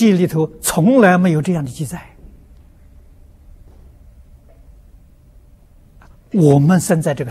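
An elderly man speaks calmly and clearly into a nearby microphone, pausing between phrases.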